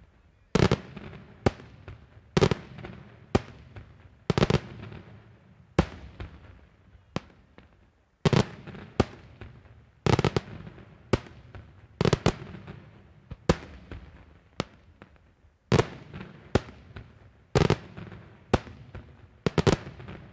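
Fireworks shells burst in loud, booming bangs that echo and rumble away.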